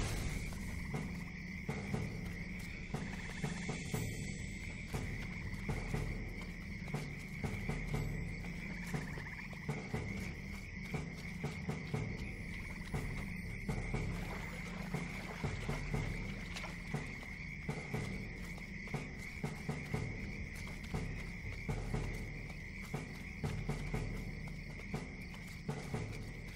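Footsteps thud quickly and evenly on soft ground.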